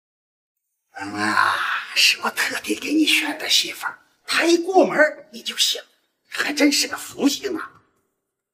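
An elderly man talks with animation, close by.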